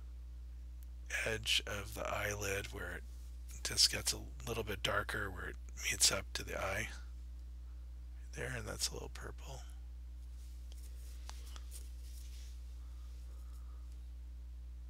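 A paintbrush dabs and scrapes softly on canvas.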